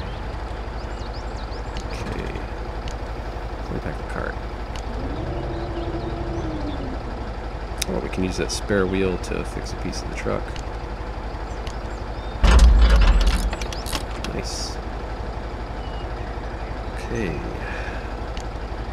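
A heavy truck engine idles with a low, steady rumble.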